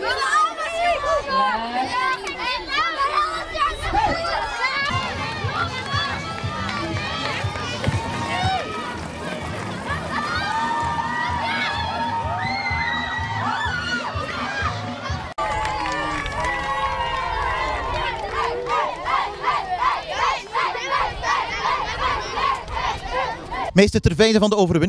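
A crowd of children shouts and cheers outdoors.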